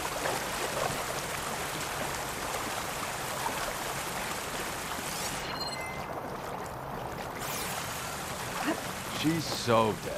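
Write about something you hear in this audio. Water sloshes and splashes around wading legs.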